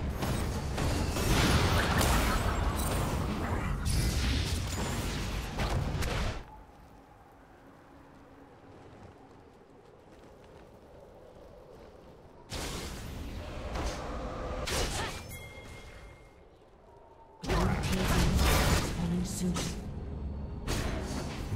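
Game spells whoosh and blast during a battle.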